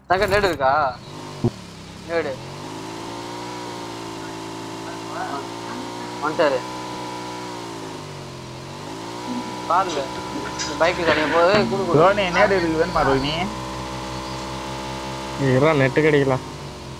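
A motorcycle engine drones steadily, its pitch dipping and rising as it speeds up and slows.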